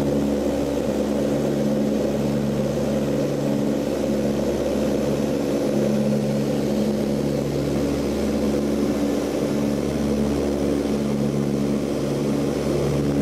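A propeller engine drones loudly and steadily with a throbbing hum.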